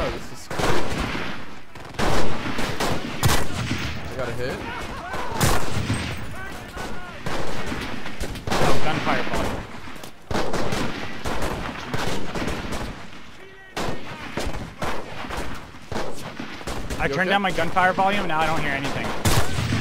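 Gunshots crack repeatedly nearby.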